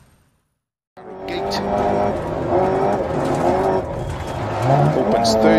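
A rally car engine revs hard and roars.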